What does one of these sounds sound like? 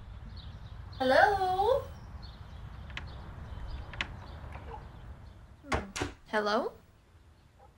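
A young woman speaks briefly nearby.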